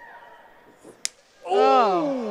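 A kick lands with a sharp thud.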